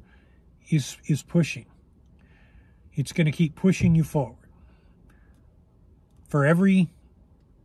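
A middle-aged man speaks with animation, close by, in short bursts.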